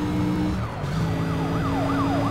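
A police siren wails close by.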